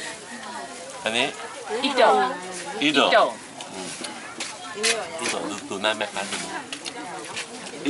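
A man talks animatedly close by.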